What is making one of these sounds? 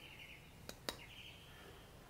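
Chopped chillies tip into a metal jar with a light clatter.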